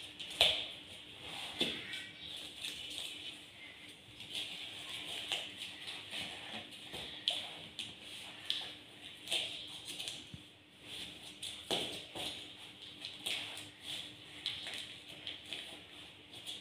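Cardboard puzzle pieces tap and slide on a table.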